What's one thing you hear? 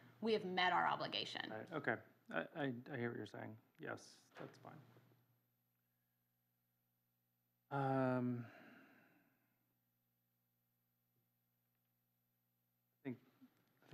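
A woman speaks calmly into a microphone in an echoing room.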